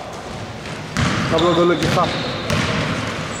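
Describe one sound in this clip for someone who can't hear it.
A basketball bounces with echoing thuds in a large hall.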